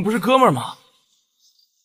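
A young man speaks pleadingly, close by.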